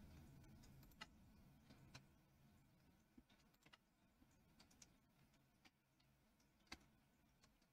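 Soft menu clicks tick now and then.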